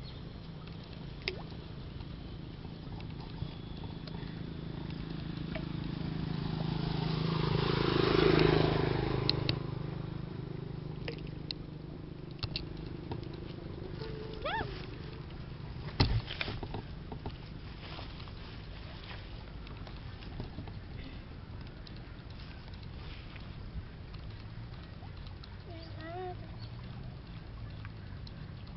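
Small fish splash and rustle in a tub of water as hands rummage through them.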